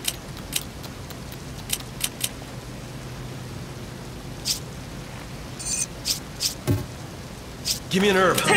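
Short game menu clicks tick one after another.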